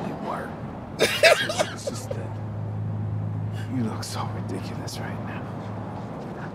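A man laughs loudly close to a microphone.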